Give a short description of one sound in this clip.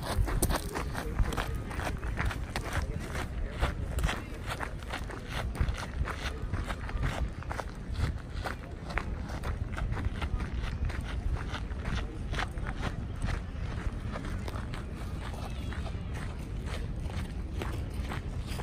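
Running footsteps crunch steadily on gravel.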